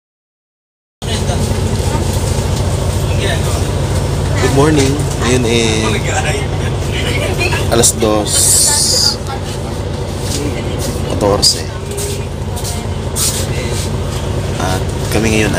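A bus engine hums low and steady.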